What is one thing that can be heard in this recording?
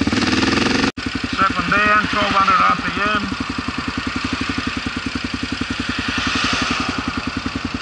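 A single-cylinder dual-sport motorcycle rolls slowly in traffic, its engine thumping near idle.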